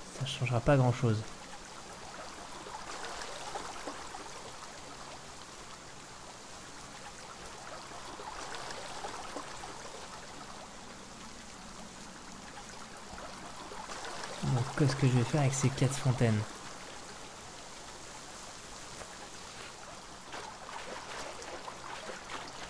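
Water pours and splashes into a basin.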